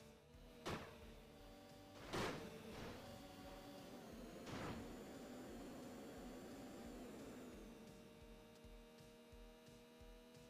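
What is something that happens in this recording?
A sport motorcycle engine drones at high revs.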